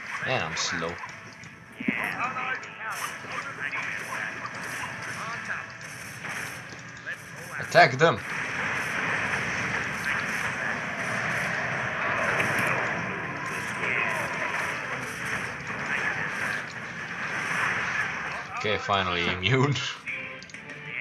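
Weapons clash and spells burst in a busy game battle.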